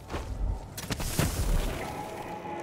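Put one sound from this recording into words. A magical whoosh sweeps past.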